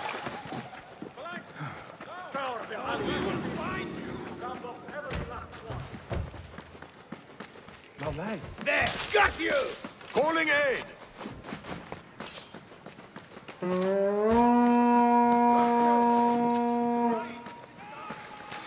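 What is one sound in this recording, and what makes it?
Footsteps run quickly over packed dirt and stone.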